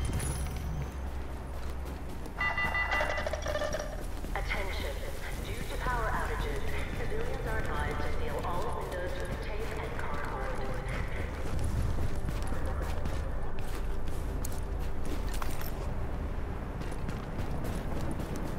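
Wind howls in a blizzard.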